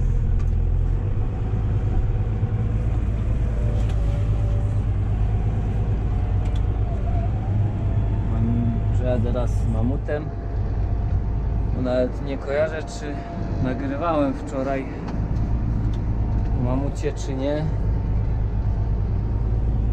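A tractor engine rumbles steadily from inside the cab.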